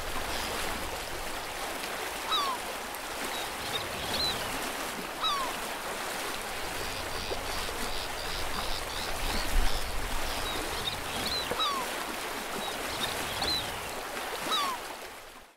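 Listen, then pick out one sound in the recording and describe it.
Water ripples and laps gently.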